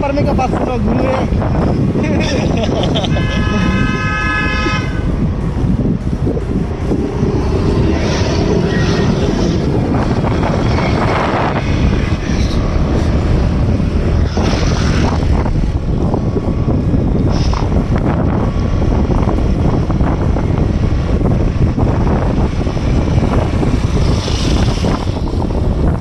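Wind rumbles loudly against the microphone while riding outdoors.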